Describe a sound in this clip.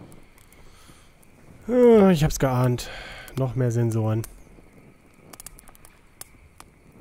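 A campfire crackles softly.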